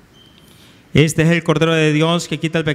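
A man chants loudly through a microphone.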